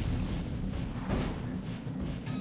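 Bullets strike the ground with sharp cracks.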